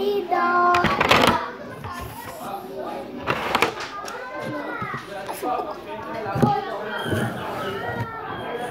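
Plastic containers clatter and knock.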